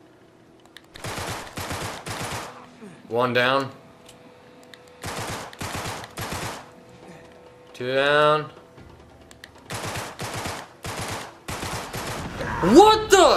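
Rifle fire rattles in rapid bursts.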